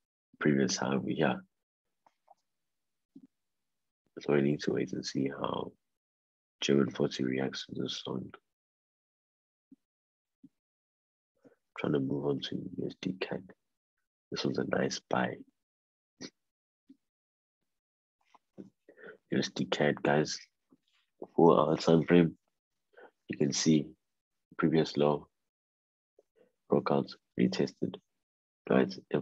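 A man talks calmly in short bursts, heard through an online call.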